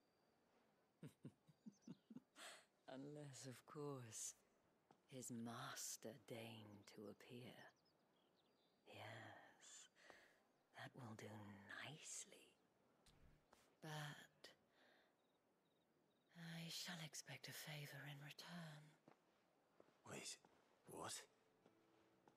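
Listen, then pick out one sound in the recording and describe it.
A man talks into a close microphone.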